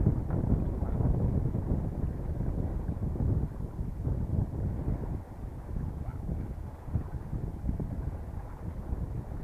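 Wind buffets a microphone outdoors, rumbling steadily.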